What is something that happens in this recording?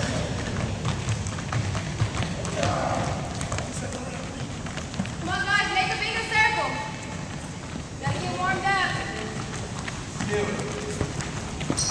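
Footsteps patter on a wooden floor in a large echoing hall.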